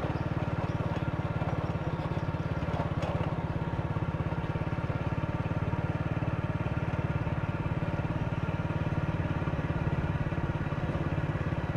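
A motorbike engine putters steadily at close range.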